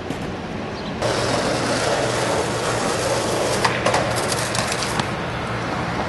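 A car drives past loudly.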